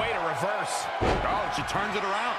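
A blow lands on a wrestler's body with a heavy thud.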